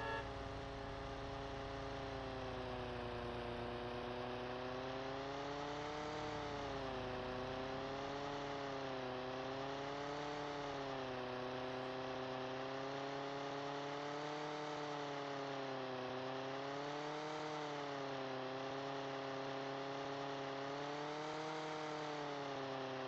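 A small plane's propeller engine drones steadily, its pitch rising and falling.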